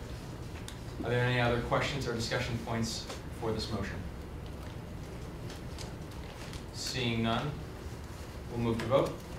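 A man speaks calmly in a room, heard from a distance.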